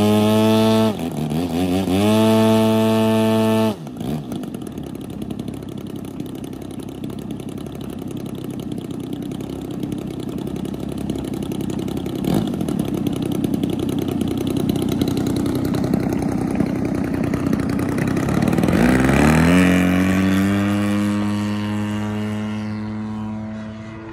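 A model airplane's engine buzzes loudly, idles, then revs up high for takeoff.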